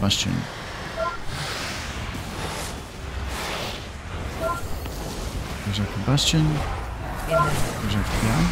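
Short chiming alert tones ring out now and then.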